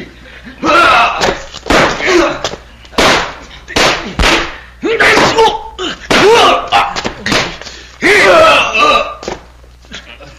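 Punches and kicks thud sharply.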